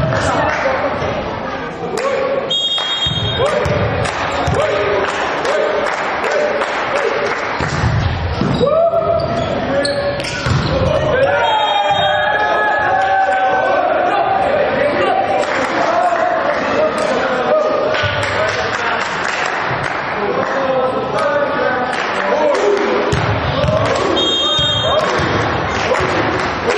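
Young men shout and call to each other on a court in an echoing hall.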